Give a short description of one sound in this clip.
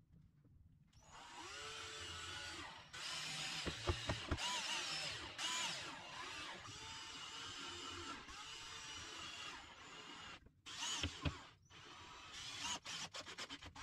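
A cordless impact driver whirs and hammers as it drives screws into wood.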